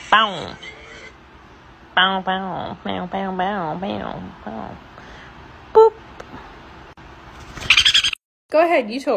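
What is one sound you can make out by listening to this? A small parrot chirps and squawks up close.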